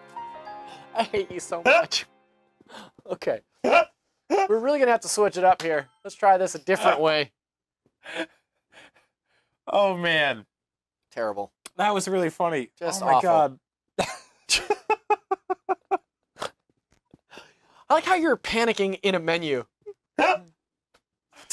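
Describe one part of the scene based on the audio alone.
A man laughs loudly and heartily, close to a microphone.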